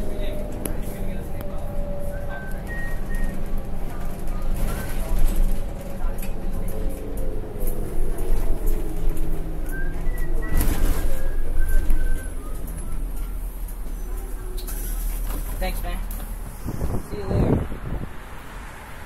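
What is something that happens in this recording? A bus rattles and clatters over bumps.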